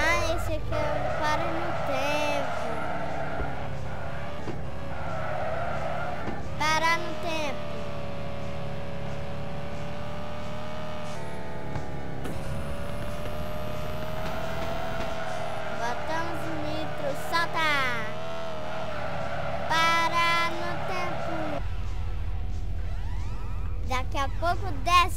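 A car engine revs and hums steadily, rising in pitch as it speeds up.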